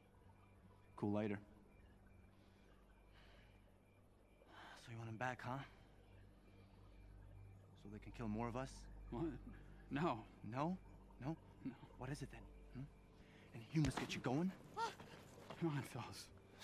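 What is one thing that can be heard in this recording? A young man speaks calmly in a low voice.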